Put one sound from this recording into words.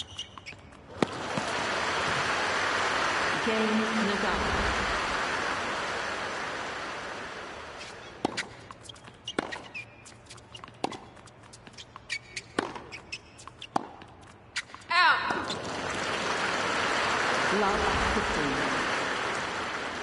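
A crowd cheers and applauds loudly, then slowly dies down.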